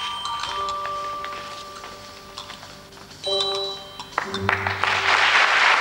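An orchestra plays a closing chord.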